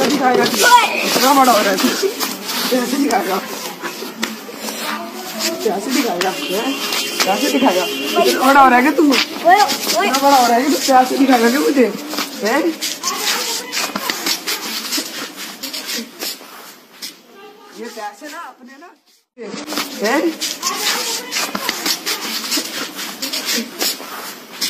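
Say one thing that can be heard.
A boy cries and screams in distress nearby.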